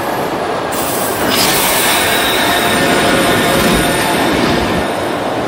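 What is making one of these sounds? A train rumbles steadily along the rails.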